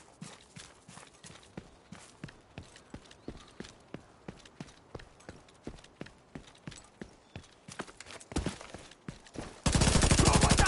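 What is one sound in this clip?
Footsteps thud rapidly on the ground as a soldier runs.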